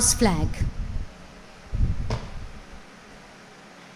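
Shoes stamp on a hard floor.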